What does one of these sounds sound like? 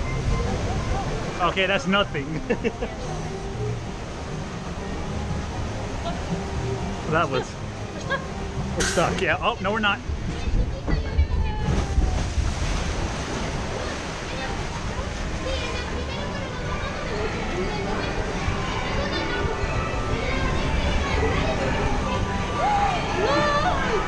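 Water rushes and splashes steadily around a boat.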